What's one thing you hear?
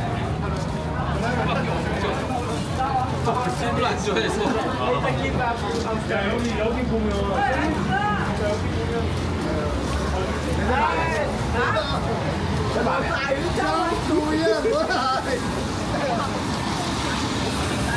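Men and women talk in a crowd nearby.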